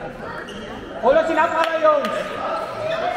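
A teenage boy shouts across a large echoing sports hall.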